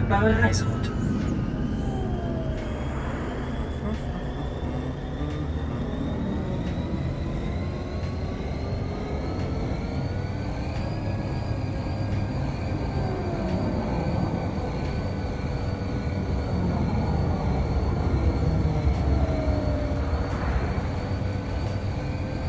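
A hovering vehicle's engine hums steadily, its pitch slowly rising and falling.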